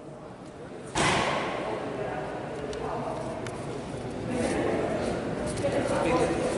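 Spectators cheer and chatter in a large echoing hall.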